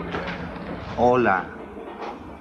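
A woman answers briefly in a raised voice.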